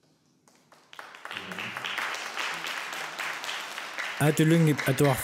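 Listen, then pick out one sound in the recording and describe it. A woman claps her hands in a large echoing hall.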